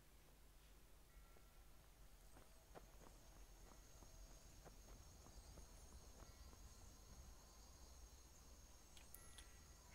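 Footsteps crunch softly over rough ground.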